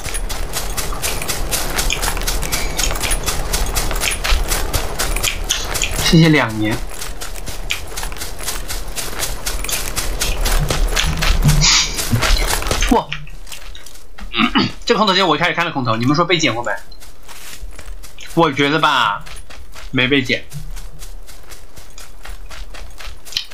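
Quick footsteps thud steadily through dry grass and dirt.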